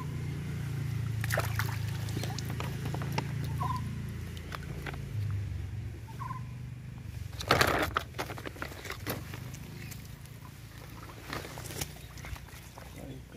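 Hands splash and slosh in shallow water.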